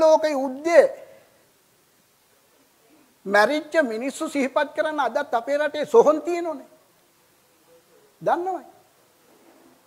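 An elderly man speaks with animation through a microphone, in short bursts with pauses.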